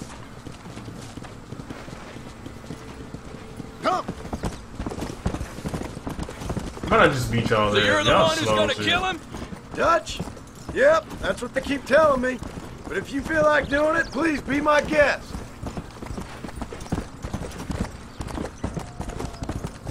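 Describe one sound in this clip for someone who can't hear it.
Horses' hooves thud steadily at a gallop on a dirt trail.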